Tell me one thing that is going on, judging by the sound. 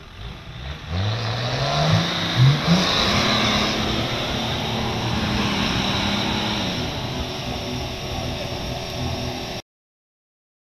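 Mud splashes and sprays under spinning tyres.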